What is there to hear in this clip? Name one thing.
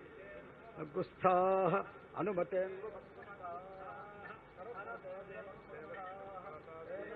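A man chants in a steady voice nearby.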